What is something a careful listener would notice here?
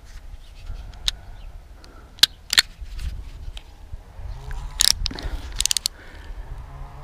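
A metal blade scrapes and clicks against a metal strip.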